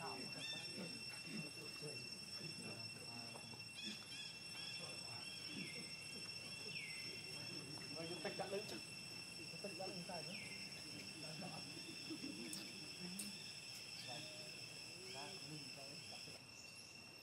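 A baby monkey squeaks and cries.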